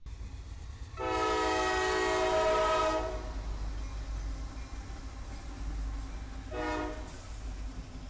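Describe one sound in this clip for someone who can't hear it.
A diesel locomotive horn blares loudly.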